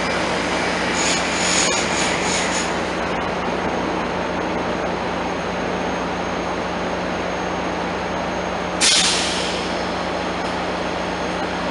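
A train idles with a steady low hum.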